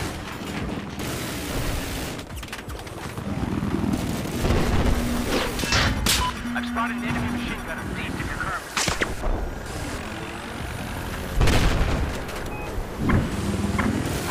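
Explosions and gunfire boom and crackle.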